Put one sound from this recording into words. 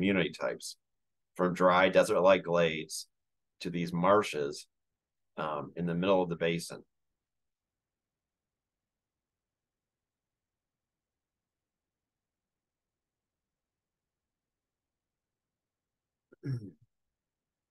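A man speaks calmly over an online call, lecturing.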